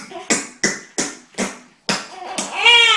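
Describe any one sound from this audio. A man kisses a baby with loud smacking sounds.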